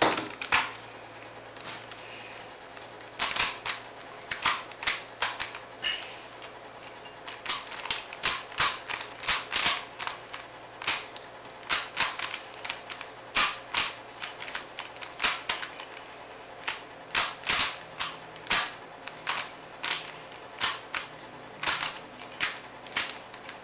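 A puzzle cube clicks and clacks quickly as its layers are turned.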